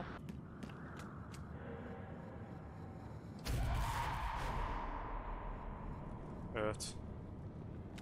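A young man talks into a microphone close up.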